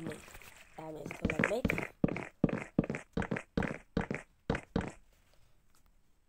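Wooden blocks are placed with soft, quick knocks.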